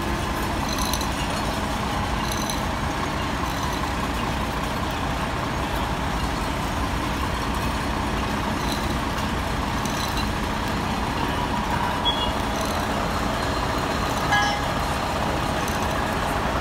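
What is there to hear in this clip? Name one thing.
A fire engine idles with a steady low rumble.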